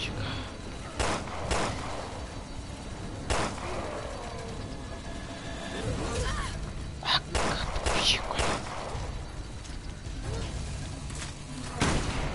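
Gunshots ring out one after another.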